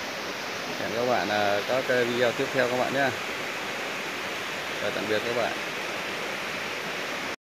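A stream splashes and trickles over rocks nearby.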